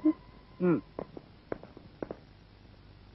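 Footsteps tread briskly on a hard floor.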